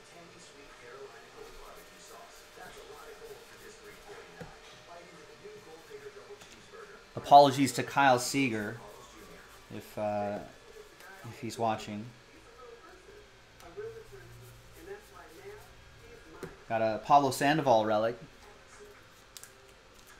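Trading cards rustle and slide as a hand flips through them.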